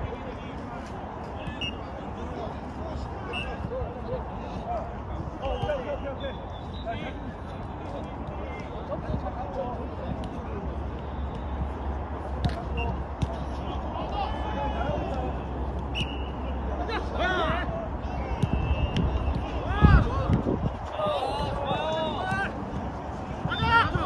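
Men shout and call out to each other across an open court.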